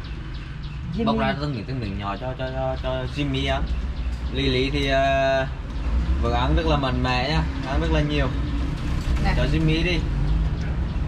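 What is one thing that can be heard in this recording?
A monkey squeals in short, whining calls.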